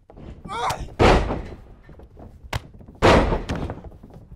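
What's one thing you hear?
Bodies thud hard onto a wrestling ring mat.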